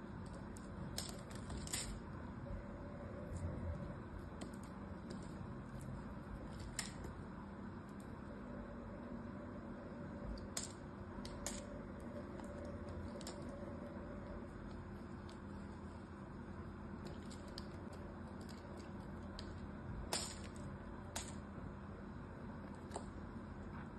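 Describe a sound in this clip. Chunks of soap crack and snap off.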